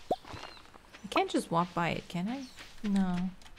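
A young woman talks casually into a nearby microphone.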